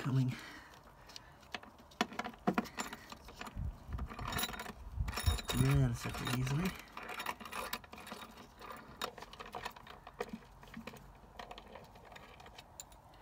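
Metal tools clink and knock against metal.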